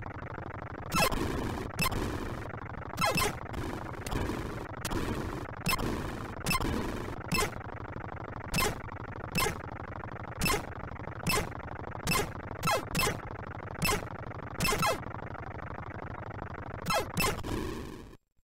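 Sharp electronic zaps of gunfire ring out again and again.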